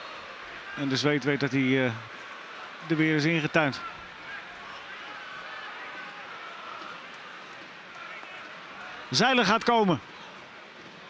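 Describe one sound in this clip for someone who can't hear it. A referee's whistle blows sharply in short blasts.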